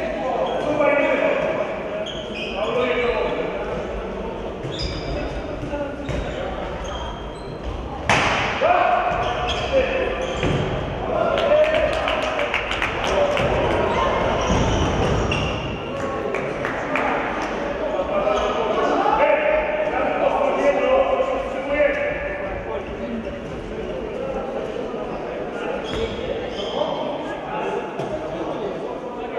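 Sports shoes squeak on a hall floor.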